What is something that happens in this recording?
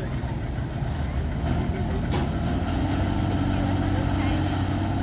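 A tractor engine rumbles and roars louder as it revs up.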